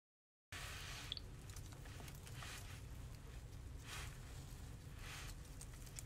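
Dry roots rustle and crackle between fingers.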